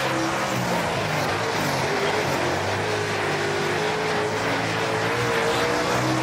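A race car engine roars steadily, its pitch shifting as it accelerates.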